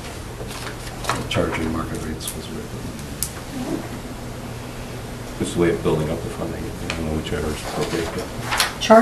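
A man speaks calmly, heard from across a room.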